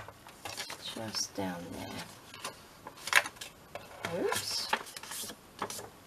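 Stiff paper crinkles as it is folded.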